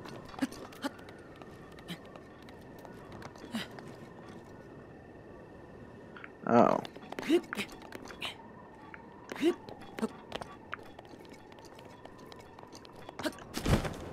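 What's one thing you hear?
Light footsteps tap and scuff on stone.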